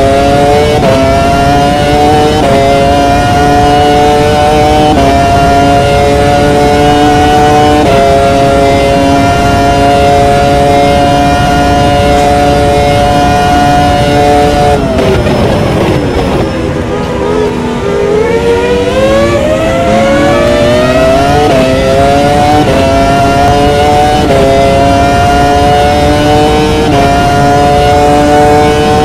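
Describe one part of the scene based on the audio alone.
A racing car engine screams at high revs, climbing through quick gear shifts.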